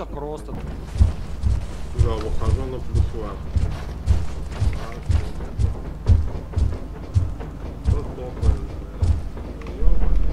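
Footsteps clang steadily on metal stairs and walkways.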